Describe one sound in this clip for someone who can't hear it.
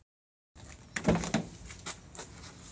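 A car door panel knocks and rattles under a hand.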